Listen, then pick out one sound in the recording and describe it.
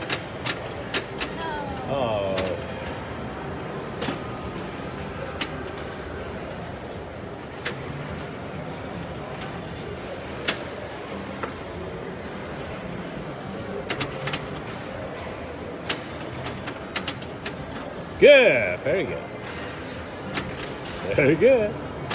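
A pinball machine's flippers and ball clack and knock sharply.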